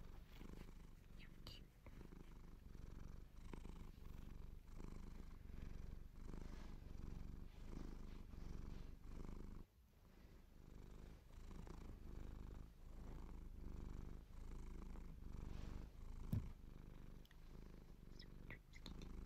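Clothing rustles and rubs close against the microphone.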